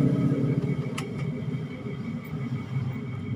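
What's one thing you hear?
A metal test probe taps lightly against a circuit board.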